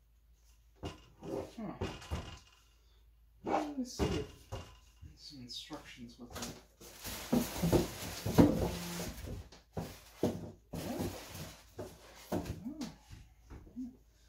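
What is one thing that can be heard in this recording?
A metal computer case knocks and rattles as it is handled.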